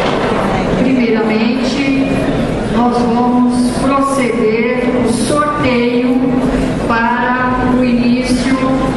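A young woman speaks calmly into a microphone, amplified in an echoing hall.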